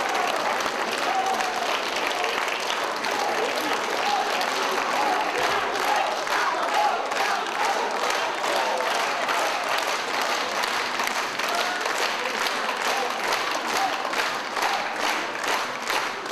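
A large crowd chatters and murmurs in an echoing hall.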